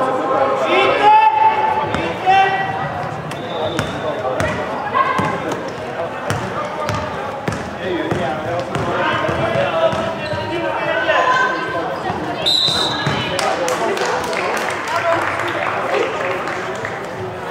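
Sneakers squeak sharply on the court floor.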